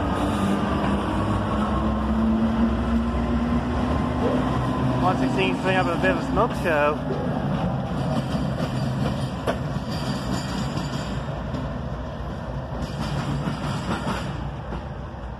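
A freight train rumbles and clatters past close by, then fades away.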